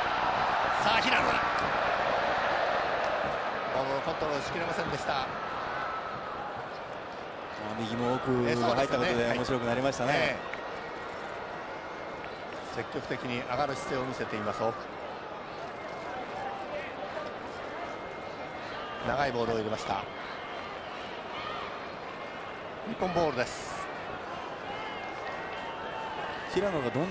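A large stadium crowd roars and murmurs.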